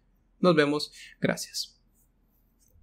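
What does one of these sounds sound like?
A young man speaks briefly and with animation into a microphone.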